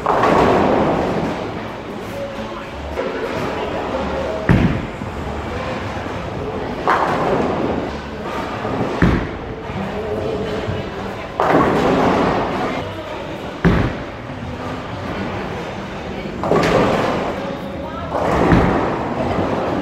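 Bowling pins crash and clatter in a large echoing hall.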